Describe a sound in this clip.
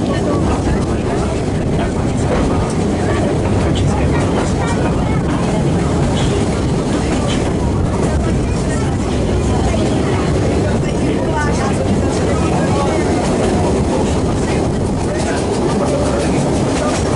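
A narrow-gauge train rumbles along the rails, heard from inside a carriage.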